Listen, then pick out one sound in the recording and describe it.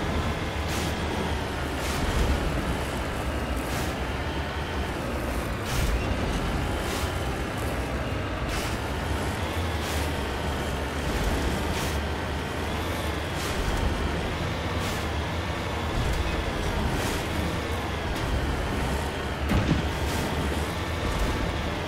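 A vehicle engine hums steadily, rising and falling in pitch as it drives over rough ground.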